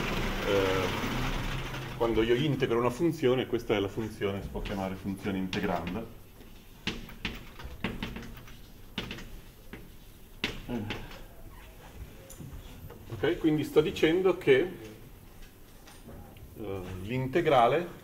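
A man lectures calmly in an echoing room.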